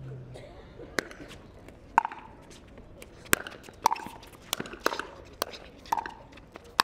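Paddles strike a plastic ball back and forth in a quick rally.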